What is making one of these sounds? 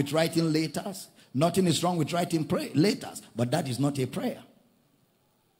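A man preaches forcefully into a microphone, his voice rising with emphasis.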